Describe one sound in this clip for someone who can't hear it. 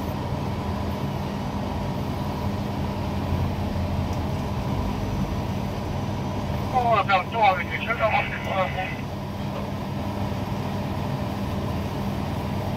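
Wind rumbles steadily outdoors, high up.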